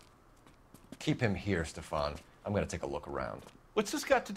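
A young man speaks calmly and firmly.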